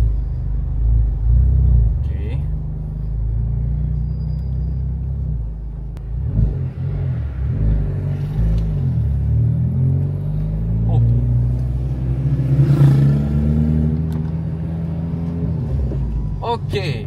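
A man talks calmly close by.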